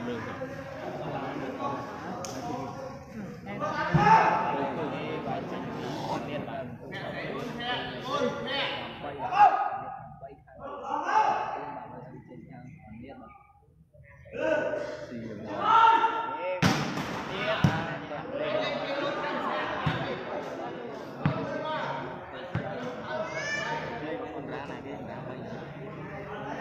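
A crowd of spectators chatters and cheers loudly in a large echoing hall.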